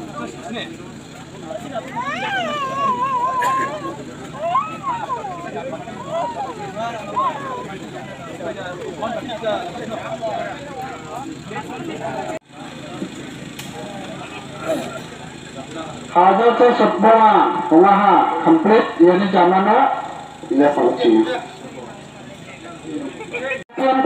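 Several men talk and call out nearby, outdoors.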